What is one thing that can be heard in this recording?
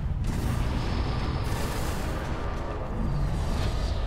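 A ship explodes with a loud burst.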